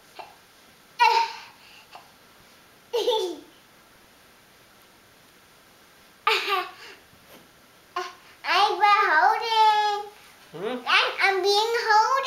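A little girl squeals, shouts and laughs playfully close by.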